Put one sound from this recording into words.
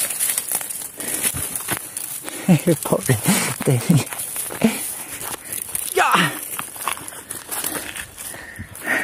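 Dogs push through dry brush, rustling the twigs.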